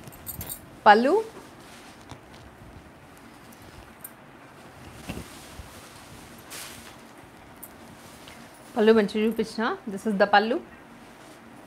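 A woman speaks close by, calmly and with a bright tone.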